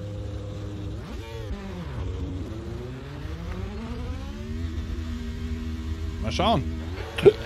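A racing car engine revs hard and climbs through the gears as the car pulls away.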